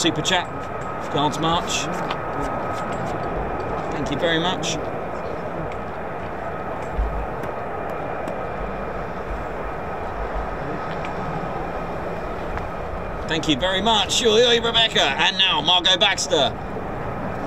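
A flag flaps and rustles in the wind outdoors.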